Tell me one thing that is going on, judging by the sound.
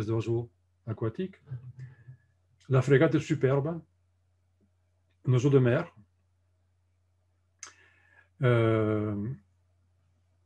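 An elderly man speaks calmly in short phrases over an online call.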